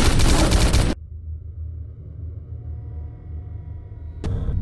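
Quiet, low music plays.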